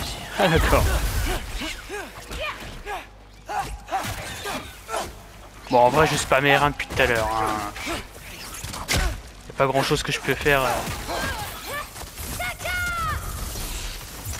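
Magic blasts burst with a crackle.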